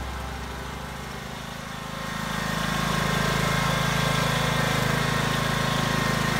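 A small tractor engine hums steadily nearby and grows louder.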